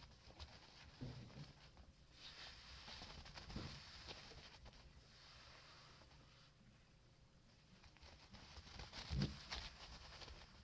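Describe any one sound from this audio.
A small puppy's paws patter and thump softly on a soft surface.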